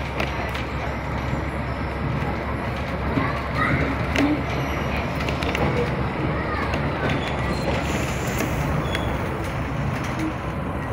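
A train rumbles and clatters steadily along the track.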